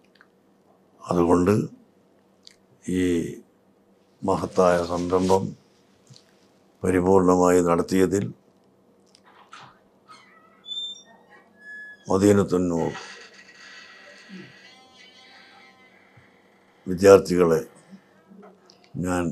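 An elderly man speaks slowly and calmly, close to a microphone, with long pauses.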